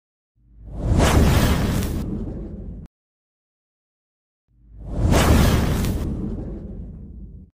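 A burst of flame roars and whooshes past.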